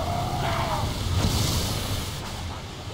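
A weapon fires with a loud rushing blast.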